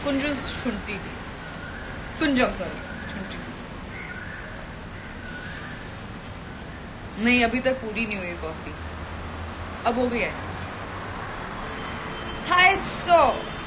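A young woman speaks close to a microphone in short, lively bursts with pauses between them.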